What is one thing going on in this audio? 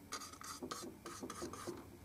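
A paintbrush dabs and mixes paint on a palette.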